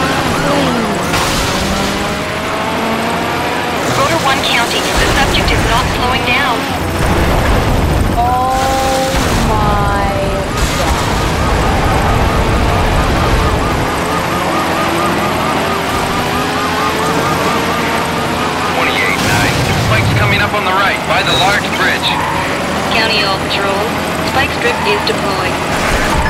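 A sports car engine roars and revs up and down as it races.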